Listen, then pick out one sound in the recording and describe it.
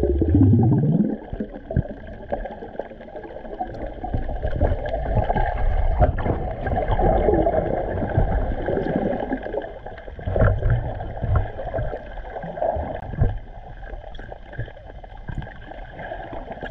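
Water swirls and gurgles in muffled bursts underwater.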